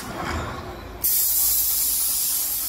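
A spray nozzle hisses loudly.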